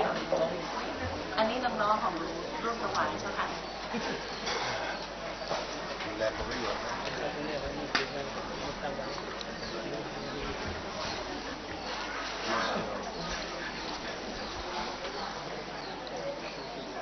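Several men and women talk quietly nearby.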